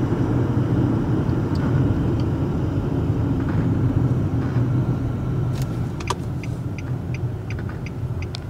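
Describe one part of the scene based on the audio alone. A car engine hums and tyres roll steadily on the road, heard from inside the car.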